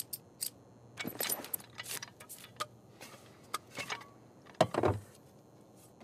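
Metal parts click and clatter as a weapon is handled.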